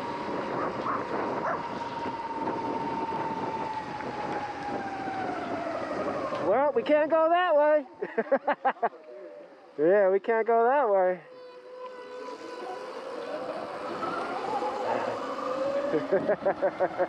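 An electric motorbike motor whines, rising and falling in pitch.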